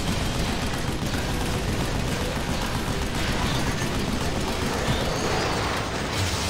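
Metal clangs and explodes with loud impacts.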